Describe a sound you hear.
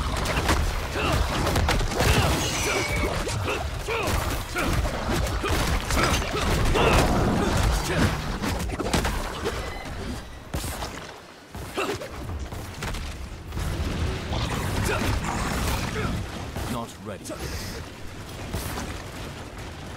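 Magic blasts and weapon hits crash and whoosh in quick bursts.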